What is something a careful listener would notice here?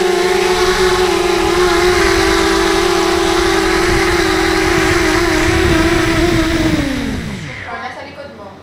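Music plays loudly from a television loudspeaker, then winds down and stops.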